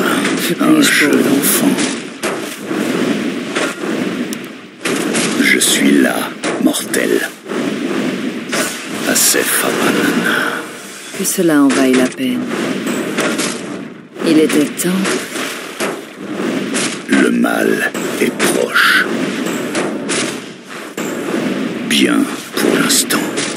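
Weapons clash in a fantasy battle.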